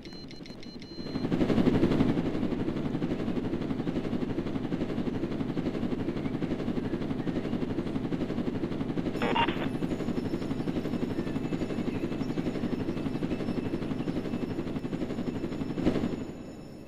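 A helicopter's rotor whirs and thrums steadily.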